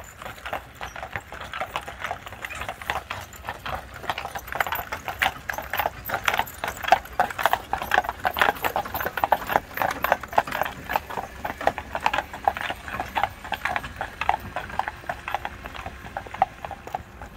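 Carriage wheels roll and hiss over a wet road.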